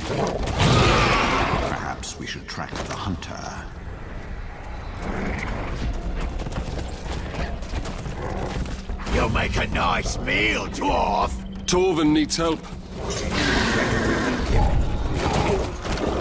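A large beast runs with heavy, thudding footfalls.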